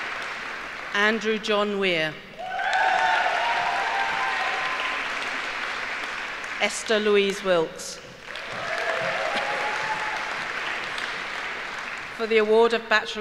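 An elderly woman reads out names through a microphone in a large echoing hall.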